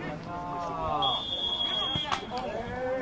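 A referee blows a short, sharp whistle.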